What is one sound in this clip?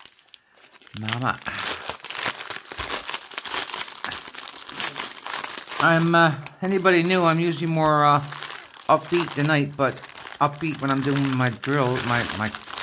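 Plastic wrapping crinkles and rustles as hands unwrap it.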